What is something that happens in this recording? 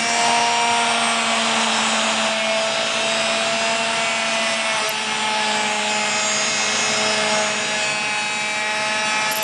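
A rotary tool whines steadily as it grinds against metal.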